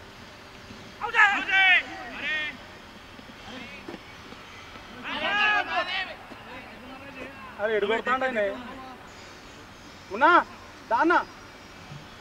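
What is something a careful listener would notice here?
Men shout and call out from a distance across an open field.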